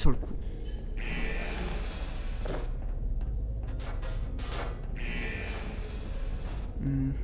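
A futuristic gun fires with a crackling electric whoosh.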